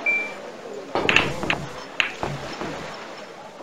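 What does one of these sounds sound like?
Pool balls clack sharply together.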